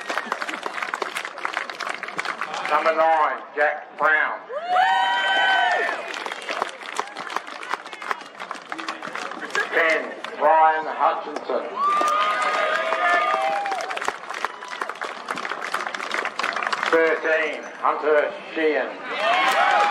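A large crowd claps and applauds outdoors.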